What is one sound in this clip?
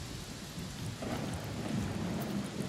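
Thunder cracks once.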